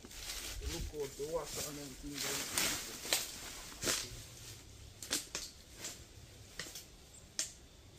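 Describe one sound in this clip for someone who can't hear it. Leafy branches rustle as a man pushes through bushes.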